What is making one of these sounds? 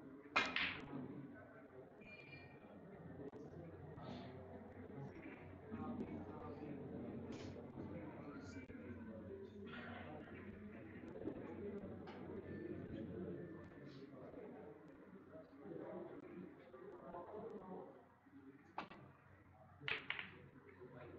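Snooker balls knock together with a click.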